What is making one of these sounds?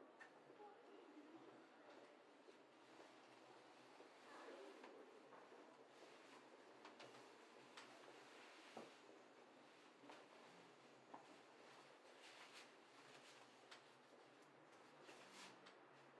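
Clothes rustle softly as a woman gets dressed.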